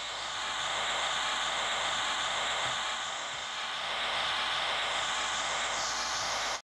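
A subway train hums steadily while standing still.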